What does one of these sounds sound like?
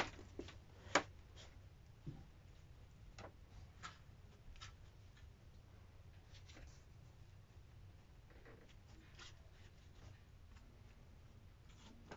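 Gloved hands rustle and push soft insulation into place.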